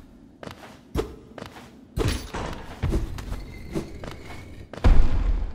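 A blade slashes with sharp swishes.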